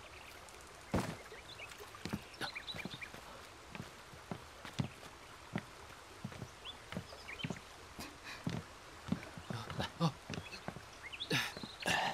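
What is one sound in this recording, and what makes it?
Footsteps crunch on gravel and dry leaves.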